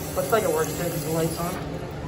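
Water trickles from a tap into a sink.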